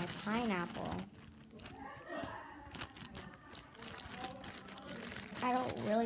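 A plastic container crinkles in a girl's hands.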